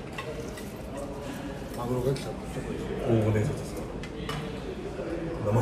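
Chopsticks click against bowls.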